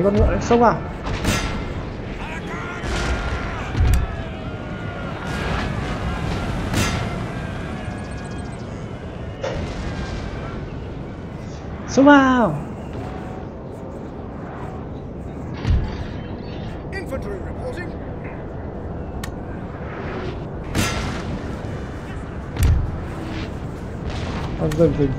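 Musket volleys crack and boom in the distance.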